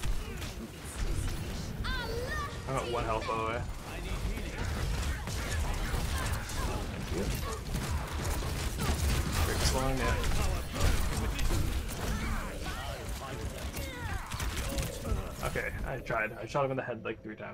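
Arrows whoosh and thud in rapid bursts of game combat.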